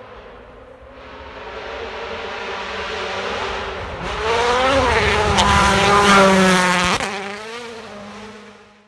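A rally car engine roars loudly as the car races closer and speeds past.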